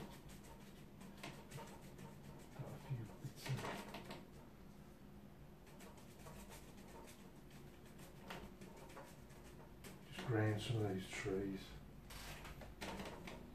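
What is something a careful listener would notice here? A brush scratches lightly on paper.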